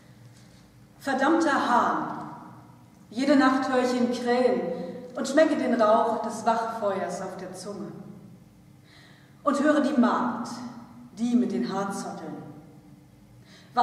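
A woman sings close by in an echoing hall.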